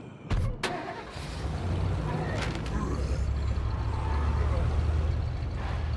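A pickup truck's engine starts and rumbles steadily.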